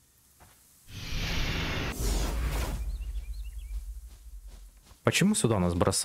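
A shimmering magical whoosh swells and fades.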